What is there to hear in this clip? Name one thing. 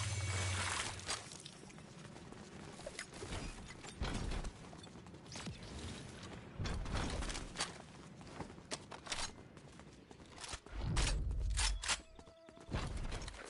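Quick footsteps patter across stone.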